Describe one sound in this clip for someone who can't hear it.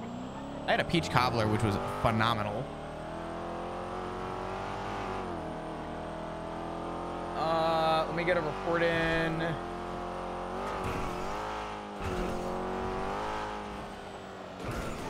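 A car engine hums steadily and rises as the car speeds up.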